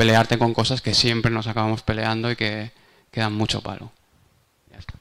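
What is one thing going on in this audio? A man speaks into a microphone, amplified over loudspeakers.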